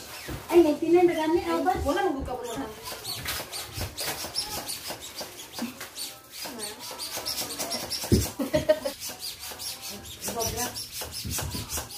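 A hand pump puffs air rhythmically into a balloon.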